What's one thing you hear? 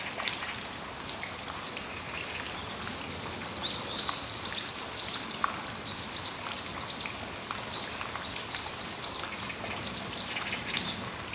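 Raindrops drip and patter off a roof's edge.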